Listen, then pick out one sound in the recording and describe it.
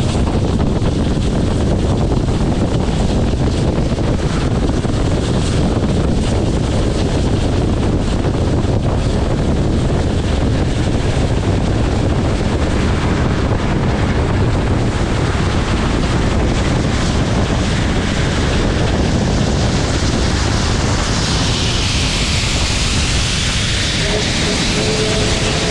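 A steam locomotive chuffs hard and steadily close by.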